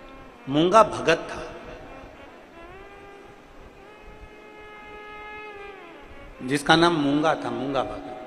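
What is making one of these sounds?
A middle-aged man sings with feeling through a microphone.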